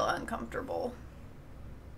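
A young woman speaks briefly and casually into a close microphone.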